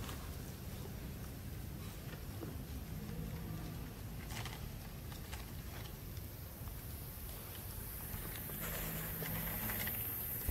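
A monkey chews fruit.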